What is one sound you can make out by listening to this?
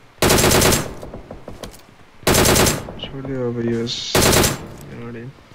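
Loud rifle shots ring out one after another.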